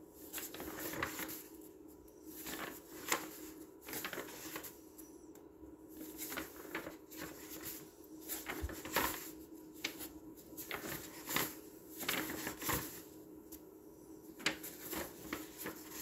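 Paper pages rustle and flap as they are turned one after another.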